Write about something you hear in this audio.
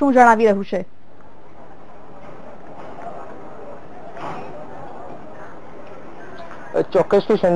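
A woman speaks clearly into a microphone, like a news presenter.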